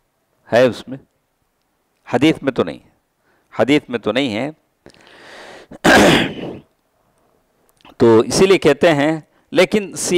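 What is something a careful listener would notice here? An elderly man speaks calmly and steadily into a close microphone, with short pauses.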